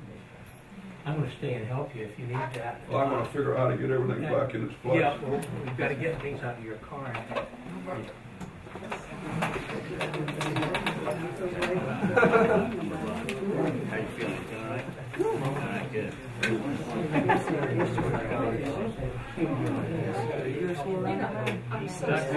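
An elderly man speaks up, clearly and nearby.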